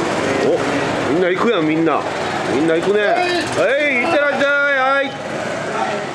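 Several men talk and laugh close by.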